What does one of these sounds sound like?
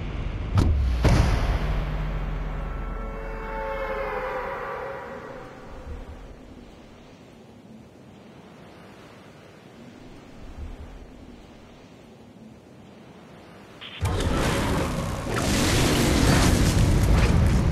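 Wind rushes past during a fast freefall dive.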